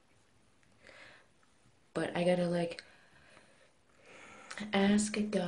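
A young woman talks calmly and close up.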